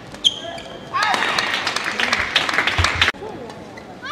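A crowd cheers and applauds loudly.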